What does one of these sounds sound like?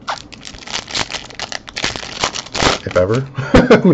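A plastic wrapper crinkles and tears as it is ripped open.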